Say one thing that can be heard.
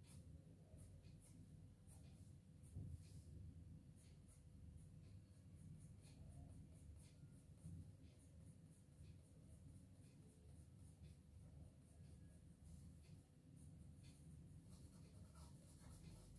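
A pencil scratches softly on paper, close up.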